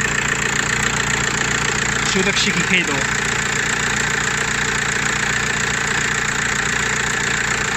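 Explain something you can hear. A drive belt spins over an alternator pulley with a steady whine.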